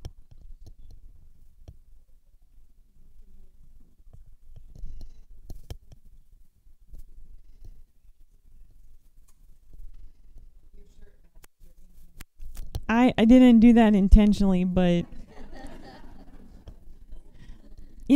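A paintbrush softly brushes and dabs on paper.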